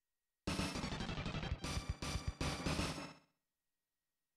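Electronic game music plays a short, loud, choppy tune and then stops.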